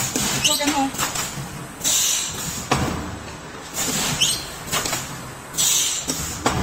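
A packaging machine clanks and thumps in a steady rhythm.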